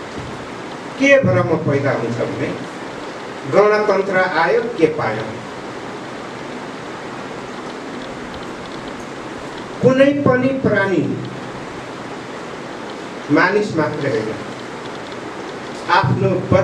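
A middle-aged man speaks forcefully into a microphone over a loudspeaker, in short bursts with pauses.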